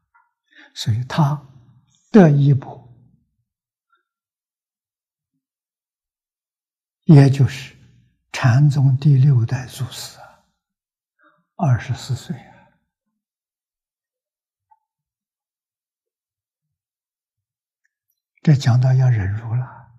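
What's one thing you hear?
An elderly man speaks calmly into a close microphone, in phrases with long pauses.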